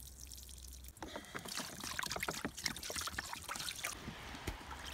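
Water pours from a bottle into a pan.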